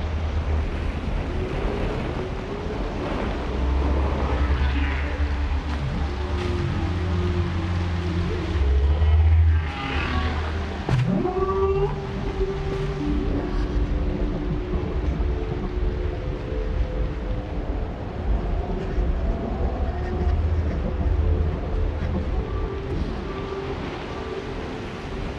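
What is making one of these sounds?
Water rushes and splashes down a waterfall.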